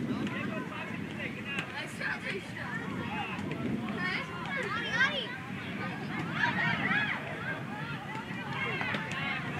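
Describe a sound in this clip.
Children shout and call out to each other across an open outdoor field.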